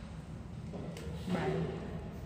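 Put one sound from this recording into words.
A woman gasps loudly in surprise.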